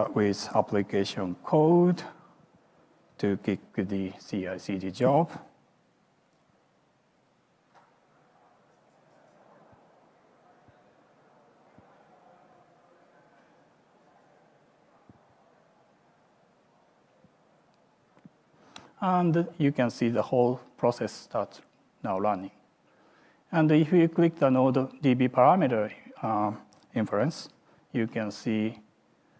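A man speaks calmly into a microphone, heard through a loudspeaker in a large hall.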